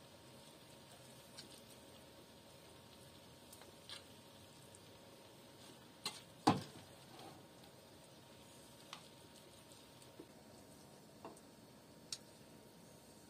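A metal spoon scrapes and clinks against a glass plate.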